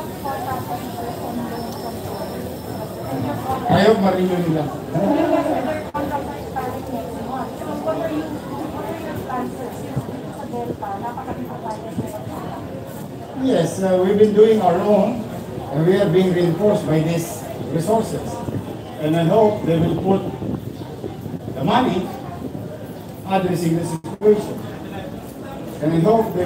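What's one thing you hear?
A man speaks calmly into several microphones close by.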